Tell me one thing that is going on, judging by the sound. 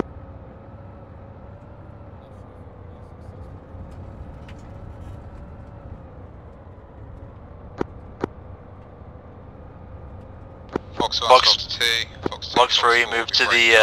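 A helicopter engine hums steadily with a low rumble.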